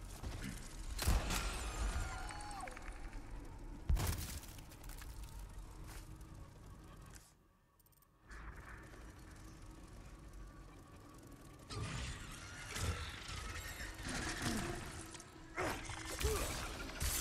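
A gun fires sharp, loud shots.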